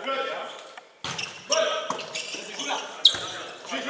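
A volleyball is struck with sharp slaps.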